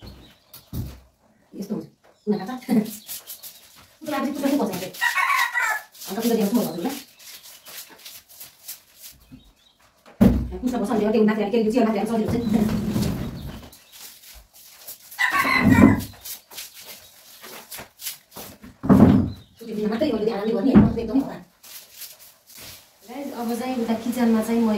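A young woman talks calmly close by, in bursts.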